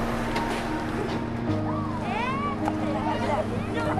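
A crowd chatters in a busy market.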